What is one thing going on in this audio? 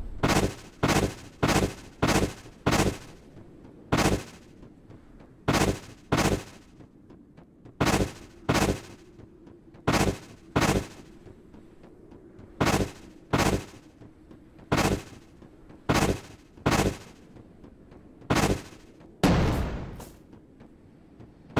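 A game character dashes again and again with sharp whooshing bursts.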